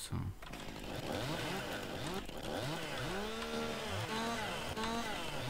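A chainsaw revs.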